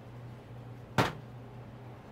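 A glass bottle clinks once against a counter.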